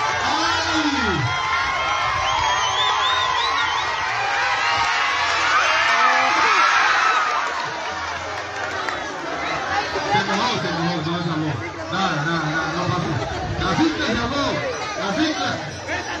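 A crowd of children and adults chatter and shout outdoors.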